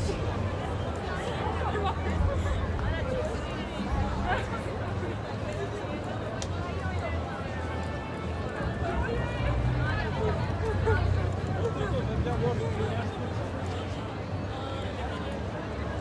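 A crowd chatters and calls out outdoors in a busy street.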